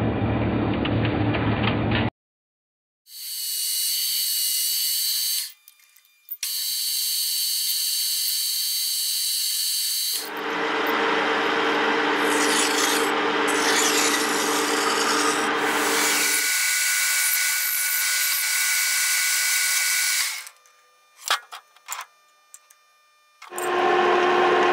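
A metal lathe spins with a steady mechanical whir.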